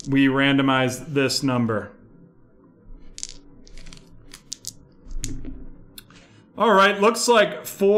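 Dice rattle in a hand and clatter onto a table.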